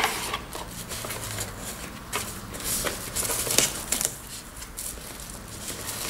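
A foam sheet rustles as hands lift it out.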